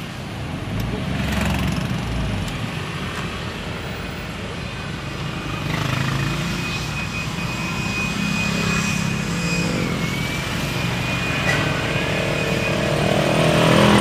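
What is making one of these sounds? A car engine hums steadily from inside the vehicle.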